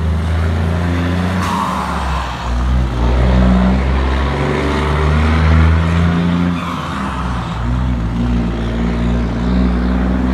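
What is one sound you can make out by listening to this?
A heavy truck's diesel engine rumbles loudly nearby as it turns.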